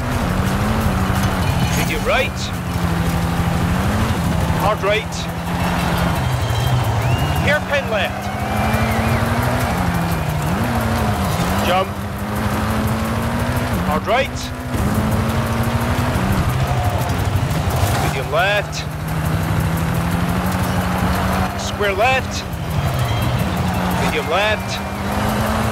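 A rally car engine roars and revs up and down.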